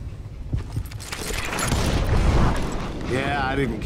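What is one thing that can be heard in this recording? A gunshot rings out with a heavy blast.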